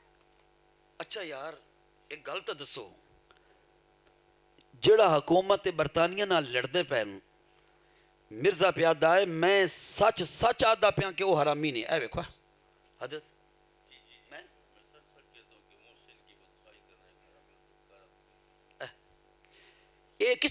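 A man preaches with passion through a microphone and loudspeakers, his voice rising into chanted, sung phrases.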